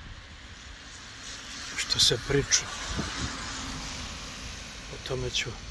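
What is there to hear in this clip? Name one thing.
Traffic hisses past on a wet road outdoors.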